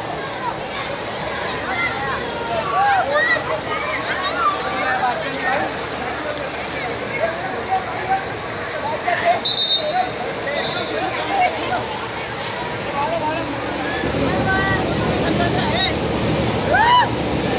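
A crowd of children shout and squeal excitedly outdoors.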